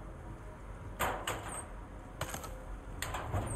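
A metal locker door clanks open.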